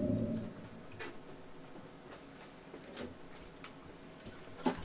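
Knobs and keys on electronic gear click softly.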